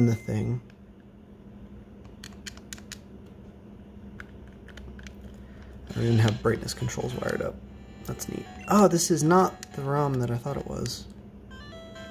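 Buttons click on a handheld game console.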